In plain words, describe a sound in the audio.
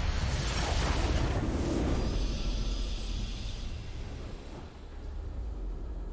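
A triumphant game victory fanfare swells and then fades.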